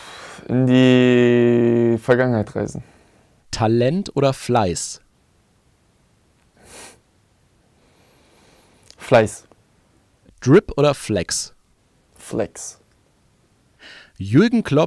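A young man speaks into a close microphone in short, animated bursts.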